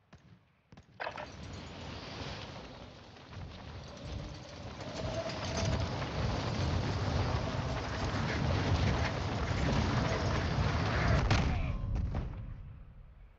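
Wind rushes loudly past a falling skydiver, then dies away.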